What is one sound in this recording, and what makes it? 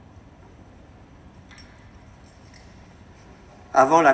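A metal censer's chains clink softly.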